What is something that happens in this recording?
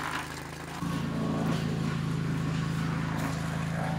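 Footsteps crunch through snow and twigs.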